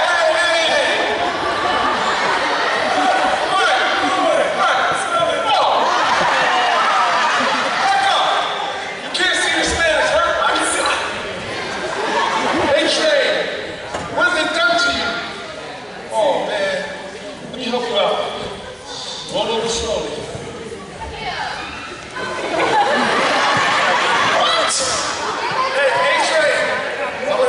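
A crowd in a large echoing hall chatters, shouts and laughs.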